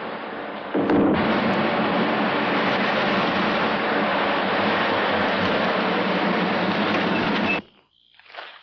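A jeep engine rumbles as it drives across rough ground.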